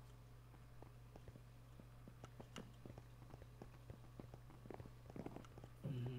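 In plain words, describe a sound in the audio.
Footsteps tap quickly on hard stone.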